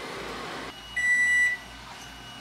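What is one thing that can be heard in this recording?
A microwave oven beeps a few times.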